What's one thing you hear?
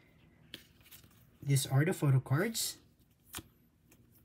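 Plastic card sleeves crinkle softly in hands.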